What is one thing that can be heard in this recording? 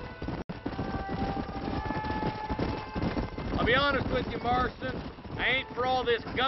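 Horses' hooves thud quickly on a dirt trail.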